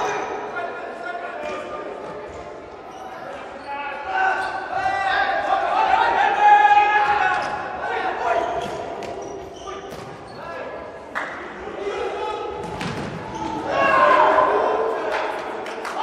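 A ball thuds off a player's foot in an echoing hall.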